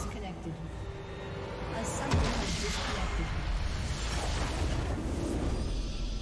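Game battle sound effects whoosh and clash.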